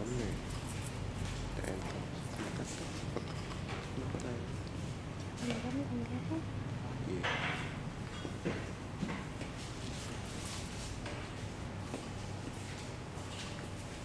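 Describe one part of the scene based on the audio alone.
A razor scrapes softly across skin with short, repeated strokes.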